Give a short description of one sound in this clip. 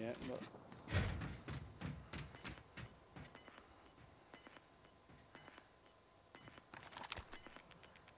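Footsteps clank on a metal roof.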